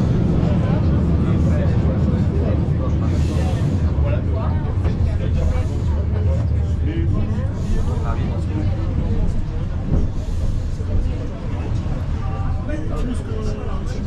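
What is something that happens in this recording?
A subway train rumbles loudly along the tracks as it slows into a station.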